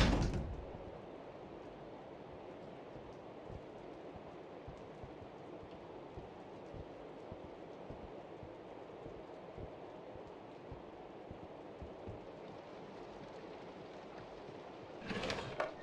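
Footsteps tread slowly on a wooden floor.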